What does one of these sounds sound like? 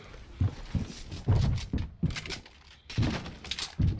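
Wooden building pieces thud into place in quick succession.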